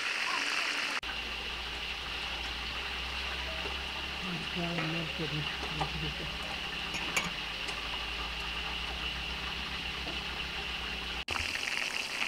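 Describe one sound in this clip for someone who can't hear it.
Water splashes as a metal bowl is rinsed.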